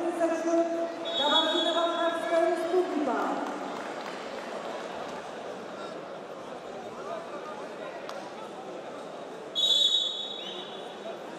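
A referee blows a whistle in short sharp blasts.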